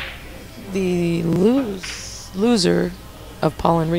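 A cue stick taps a pool ball.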